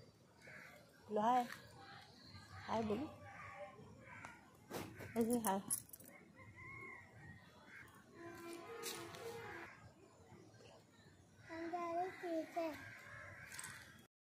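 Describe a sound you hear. A young child speaks and giggles close by.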